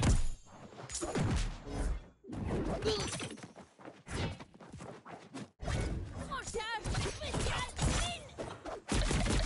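Cartoon fighters trade punches that land with sharp thuds and whooshes.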